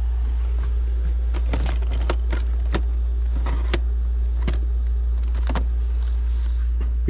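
Plastic game cases clatter and knock as a hand flips through them.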